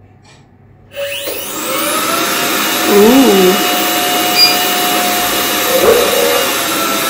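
A small electric motor whirs steadily with a high whine.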